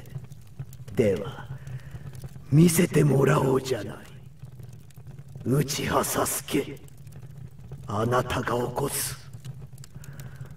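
A man speaks in a soft, sly voice.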